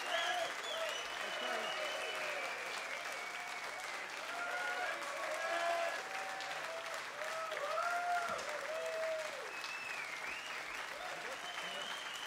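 Hands clap close by.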